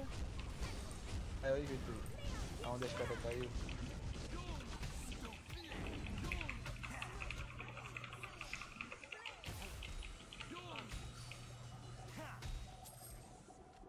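Magic spells crackle and strike during a fight.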